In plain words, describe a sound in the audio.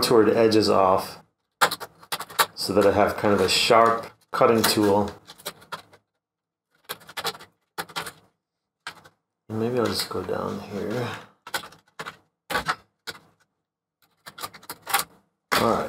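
Scissors snip through thin plastic.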